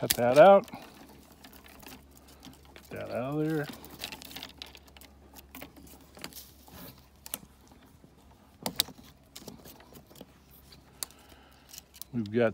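Pruning shears snip through thin branches with sharp clicks.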